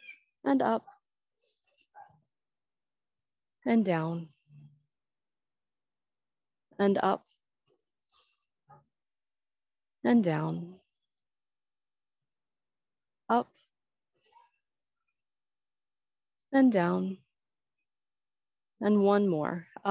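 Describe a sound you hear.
A woman speaks short cues calmly, close to a microphone, with pauses between.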